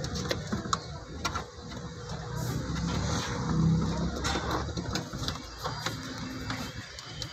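Plastic parts click and tap.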